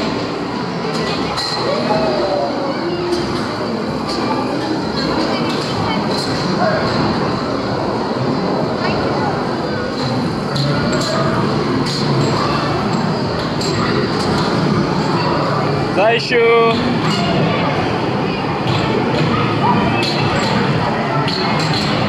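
A crowd chatters noisily in the background.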